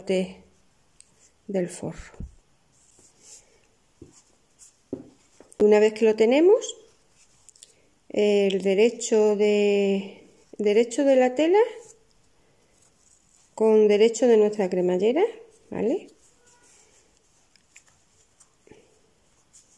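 Hands rustle and fold quilted fabric.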